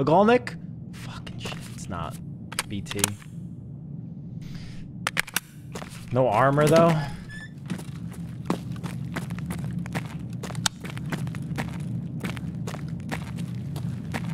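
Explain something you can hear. Footsteps tap steadily on a hard floor.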